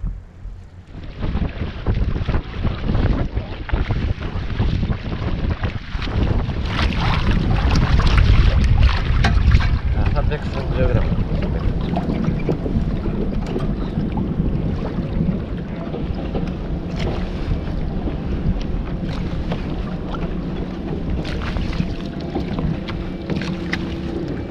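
Waves slosh and lap against the hull of a small boat.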